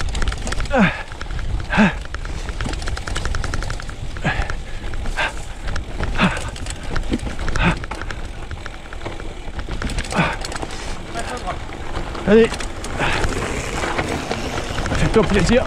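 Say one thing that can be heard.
Wind buffets loudly past a moving bicycle rider.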